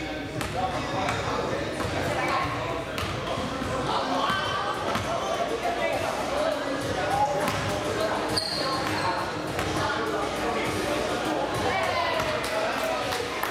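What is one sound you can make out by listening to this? Children and adults chatter in a large echoing hall.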